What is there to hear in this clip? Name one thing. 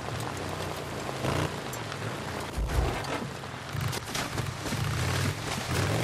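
Motorcycle tyres crunch over gravel and dirt.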